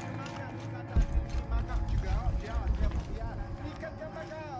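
Footsteps patter quickly on stone steps.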